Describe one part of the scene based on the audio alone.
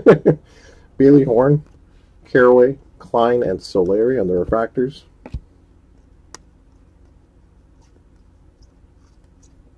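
Trading cards slide and rustle against each other.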